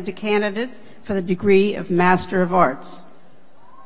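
A woman speaks calmly into a microphone in a large hall.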